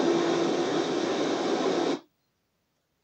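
A video game's sound plays loudly, then cuts off abruptly.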